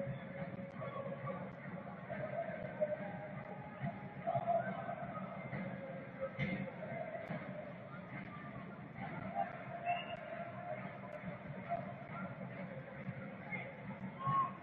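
A crowd murmurs and calls out in a large open stadium.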